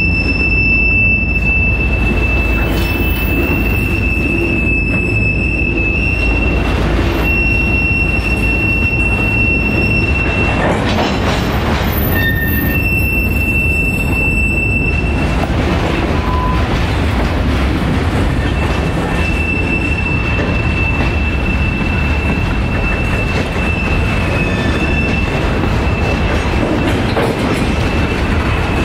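Steel wheels squeal against the rails.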